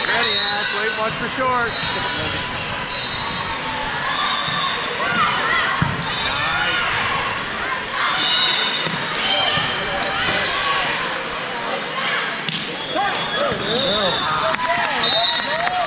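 Many voices chatter and call out across a large echoing hall.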